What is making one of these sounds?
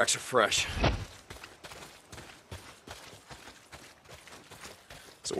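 Footsteps run quickly over soft forest ground.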